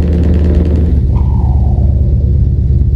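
A truck engine drops in pitch as gears shift.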